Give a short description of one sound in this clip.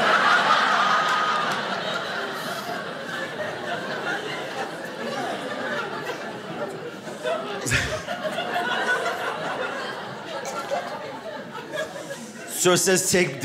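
An audience laughs and claps.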